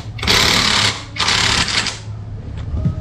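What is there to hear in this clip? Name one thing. An impact wrench whirs loudly in two short bursts.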